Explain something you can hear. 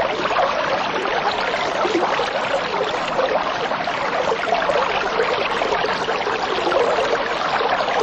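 Water bubbles and gurgles steadily as air rises through it.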